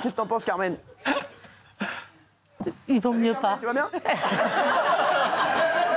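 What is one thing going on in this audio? An elderly woman laughs and speaks with animation.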